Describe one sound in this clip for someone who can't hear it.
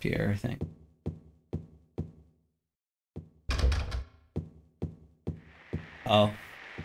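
Footsteps tap steadily along a hard floor.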